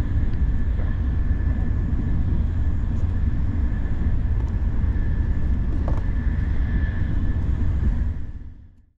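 A train rumbles steadily along the tracks with a low drone.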